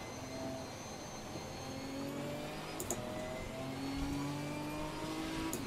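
A racing car engine hums steadily and rises in pitch as it speeds up.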